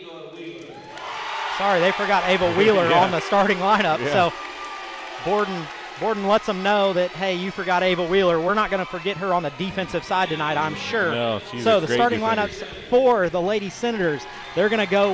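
A crowd claps hands.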